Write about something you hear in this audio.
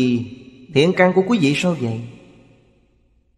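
An elderly man speaks calmly and warmly, close to a microphone.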